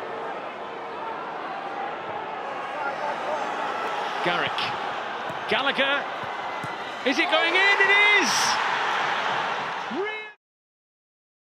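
A large stadium crowd murmurs and chants steadily.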